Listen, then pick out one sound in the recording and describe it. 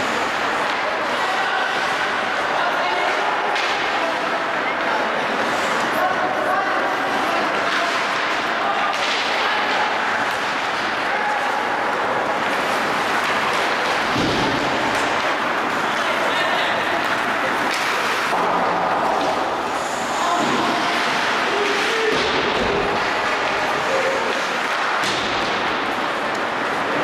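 Skates scrape and hiss across ice throughout.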